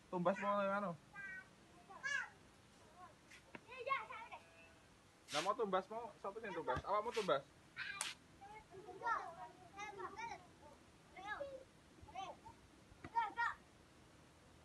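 Young children shout and chatter playfully outdoors.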